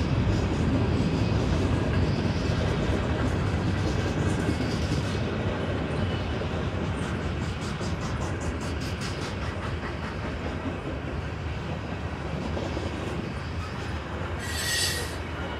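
A freight train rumbles past loudly.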